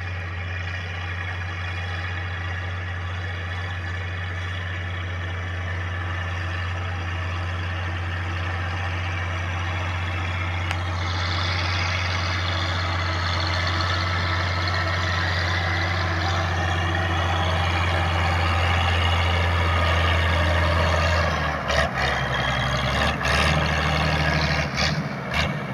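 A tractor engine drones steadily and grows louder as it approaches.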